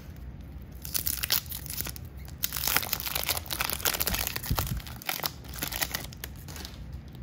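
A wax paper card pack crinkles and tears open.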